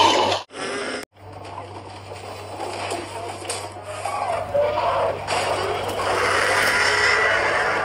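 A large creature roars loudly.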